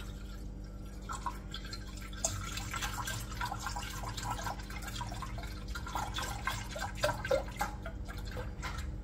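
Milk pours from a carton into a container.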